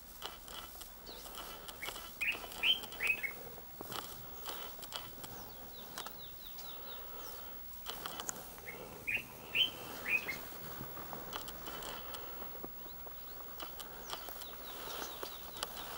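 Dry grass rustles faintly as lions walk past.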